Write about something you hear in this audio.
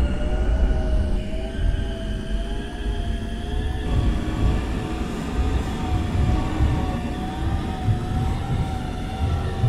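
A train rumbles and clatters over the tracks.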